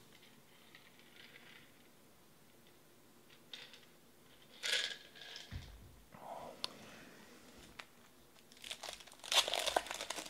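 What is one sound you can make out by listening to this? Card packs clack and shuffle as they are stacked by hand.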